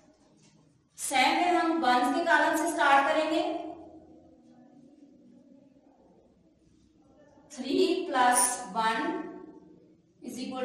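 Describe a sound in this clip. A woman speaks clearly and slowly, close by.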